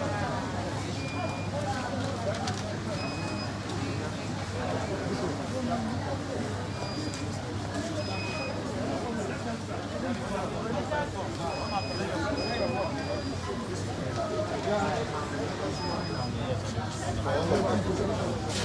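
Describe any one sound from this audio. A crowd of men and women talk over one another in a large echoing hall.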